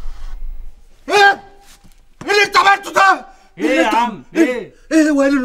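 An older man speaks loudly and with animation, close by.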